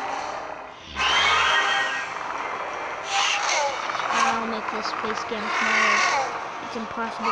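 A dinosaur roars loudly.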